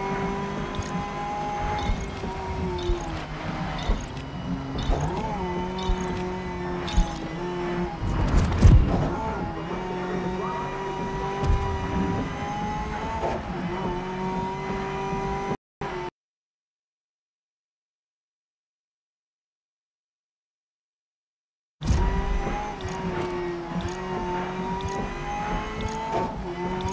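A racing car engine hums steadily and shifts in pitch as it speeds up and slows down.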